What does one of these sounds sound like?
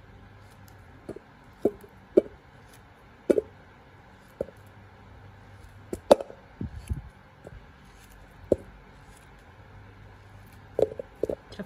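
Melon pieces drop into a metal bowl with soft thuds.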